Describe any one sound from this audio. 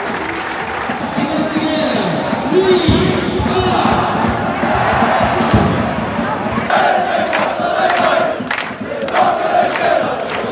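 A crowd of fans sings and chants together in unison.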